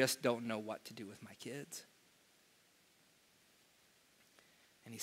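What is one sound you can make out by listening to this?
A man speaks through a microphone in an echoing room, pausing between phrases.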